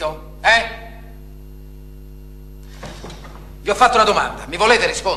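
A man speaks loudly and with emphasis, close by.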